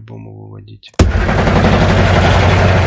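A card lands on a table with a heavy thud.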